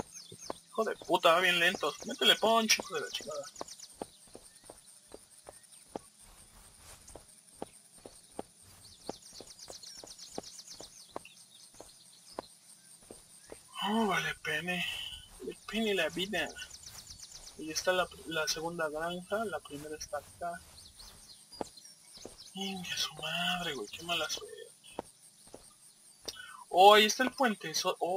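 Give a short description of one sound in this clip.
Footsteps thud steadily on soft ground.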